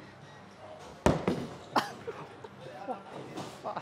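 A bowling ball thuds onto a lane and rolls.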